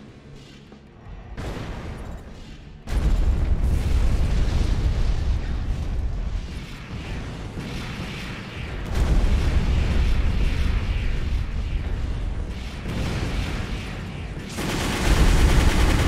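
A robot's thrusters roar steadily.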